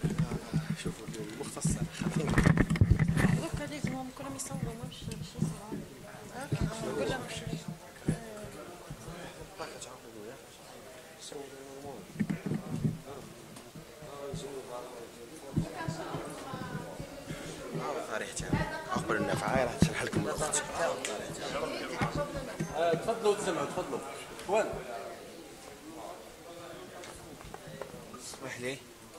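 Several people talk in the background, echoing in a large hall.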